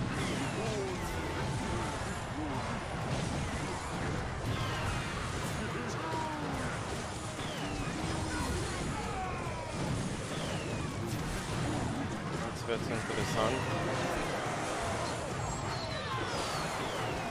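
Game battle sound effects crackle and clash busily.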